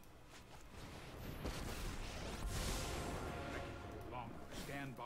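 A magical whoosh sweeps through and fades.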